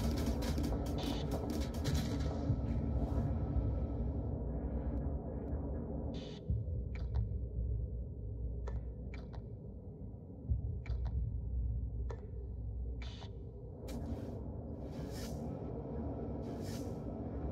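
A deep spaceship engine rumbles steadily.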